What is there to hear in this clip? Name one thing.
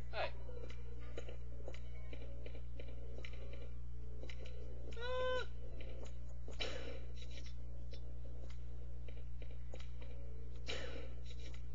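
Footsteps tread slowly on a hard stone floor.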